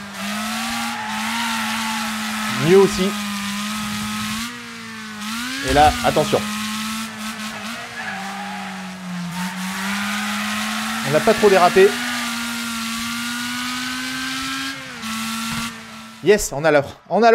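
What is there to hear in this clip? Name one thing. A racing car engine hums steadily, rising and falling slightly in pitch.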